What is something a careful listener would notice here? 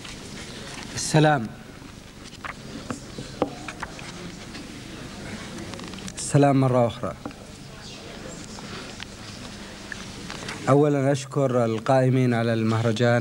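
A man recites slowly and expressively through a microphone in a large hall.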